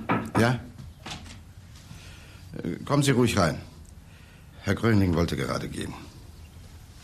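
A man speaks in a low, serious voice.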